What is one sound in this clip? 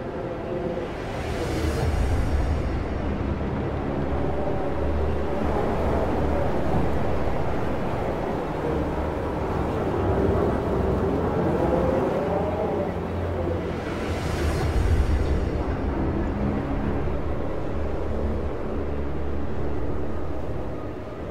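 A cold wind howls and gusts steadily.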